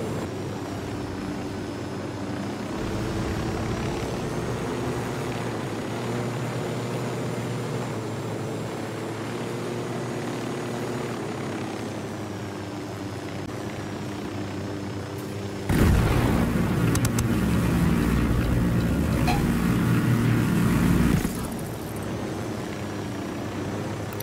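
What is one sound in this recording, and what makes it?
A helicopter engine and rotor drone steadily.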